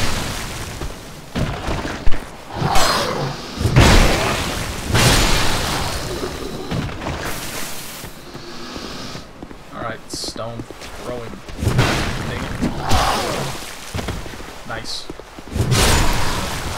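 A heavy sword swings through the air and strikes with loud thuds.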